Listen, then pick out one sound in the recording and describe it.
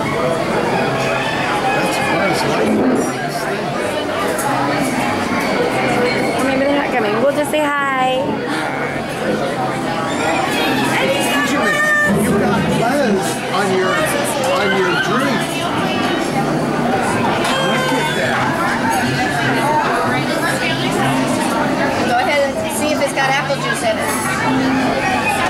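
Many people chatter in a busy, echoing room.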